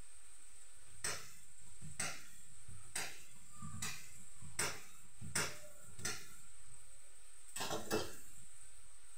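A knife chops steadily on a cutting board.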